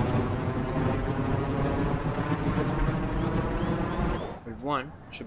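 A jet engine roars loudly with a steady, rising whine.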